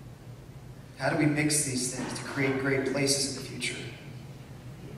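A man speaks calmly into a microphone, heard over loudspeakers in a large room.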